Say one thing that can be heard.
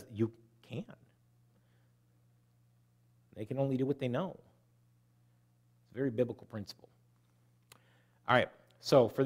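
A middle-aged man speaks through a microphone in measured phrases with pauses.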